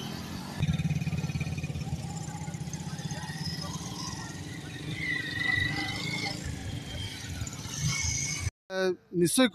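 Motorcycle engines idle and rev nearby.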